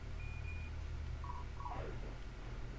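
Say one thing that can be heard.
Short electronic menu beeps sound.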